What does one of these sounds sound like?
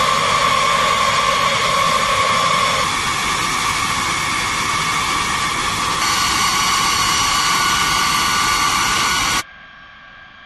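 Jet engines of a large aircraft roar and whine loudly close by.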